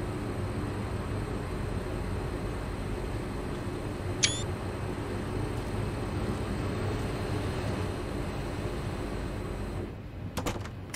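A train's engine hums steadily at standstill.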